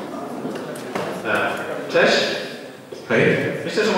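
A young man speaks into a microphone in a large echoing room.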